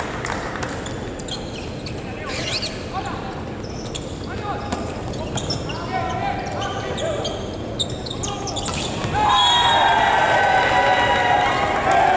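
A volleyball is struck hard and thuds in a large echoing hall.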